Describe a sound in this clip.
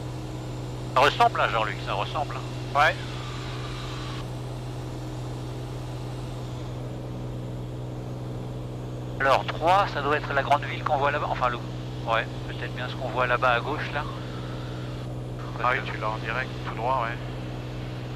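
A man speaks calmly over an intercom headset.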